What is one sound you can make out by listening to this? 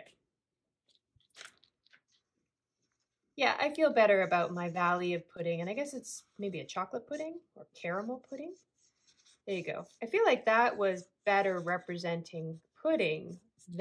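A felt-tip marker squeaks across paper.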